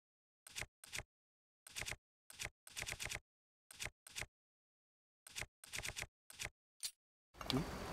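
Short menu blips sound in quick bursts as selections scroll.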